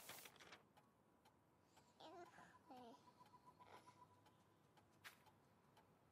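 Paper rustles.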